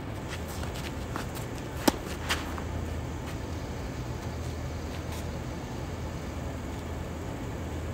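Tennis shoes scuff and squeak on a hard court.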